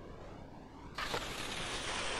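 Skis land hard on snow.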